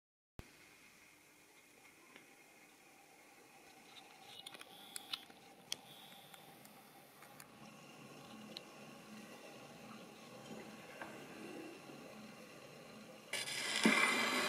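A gramophone plays music faintly.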